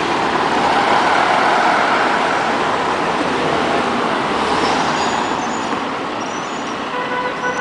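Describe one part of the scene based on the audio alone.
An articulated bus drives past.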